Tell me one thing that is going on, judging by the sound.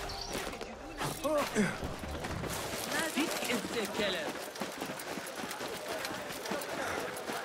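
Footsteps run quickly over dirt and stone.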